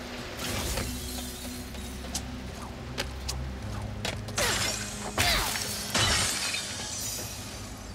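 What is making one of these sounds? Metal crates smash and shatter with sharp crashes.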